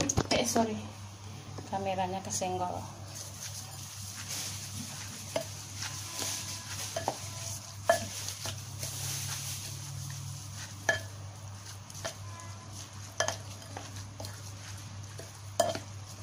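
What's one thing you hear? A wooden spatula scrapes and taps against a glass bowl while mixing shredded vegetables.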